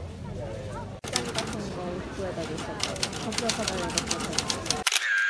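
A typewriter clacks as keys are struck quickly.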